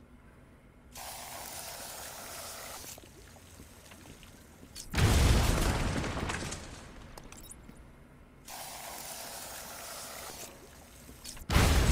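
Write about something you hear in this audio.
Gel sprays out with a steady hiss.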